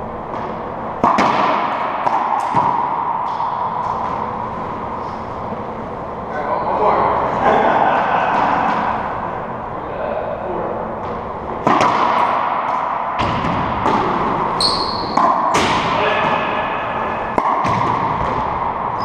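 A rubber ball smacks off walls with sharp echoing bangs in a large hard room.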